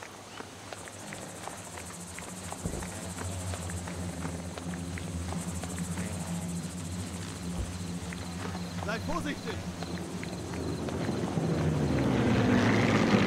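A tank engine rumbles low in the distance.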